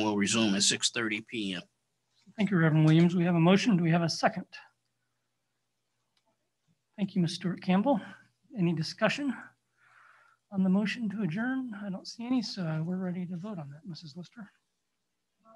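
A middle-aged man speaks calmly through an online call microphone.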